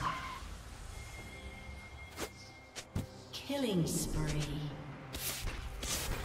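Short game sound effects whoosh and click.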